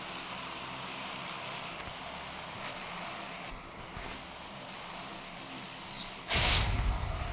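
A plane's engines drone steadily.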